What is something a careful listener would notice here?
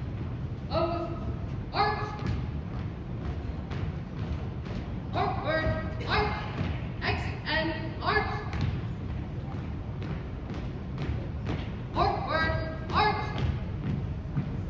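Marching footsteps stamp in unison on a wooden floor.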